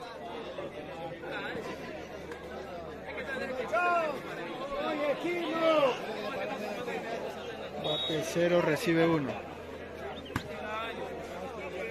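A large outdoor crowd chatters and murmurs.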